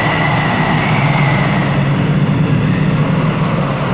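A rocket whooshes through the air.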